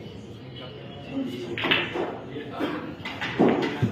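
Billiard balls clack against each other and roll across the table.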